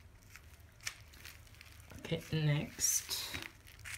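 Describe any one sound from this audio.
A plastic plant pot crinkles and taps as a hand picks it up.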